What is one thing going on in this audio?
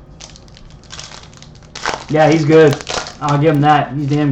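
A foil card wrapper crinkles and tears.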